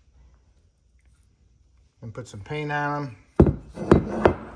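A metal part clinks as it is handled.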